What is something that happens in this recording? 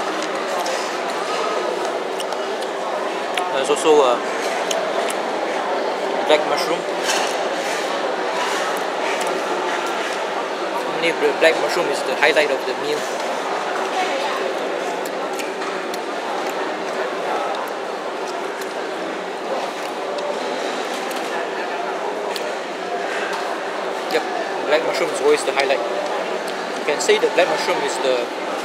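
A man talks close to the microphone, casually.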